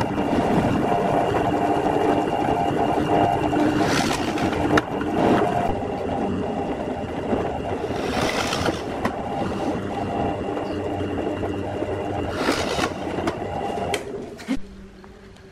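A drill press whirs loudly as it bores into wood.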